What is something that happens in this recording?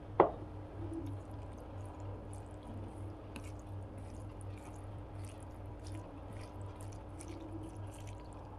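Fingers squish and mix wet rice close up.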